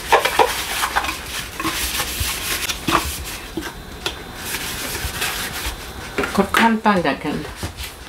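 Ceramic dishes clink against each other.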